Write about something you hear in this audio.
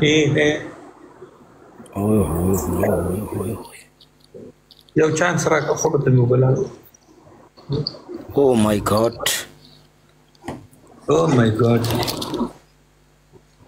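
A young man talks with animation over an online call.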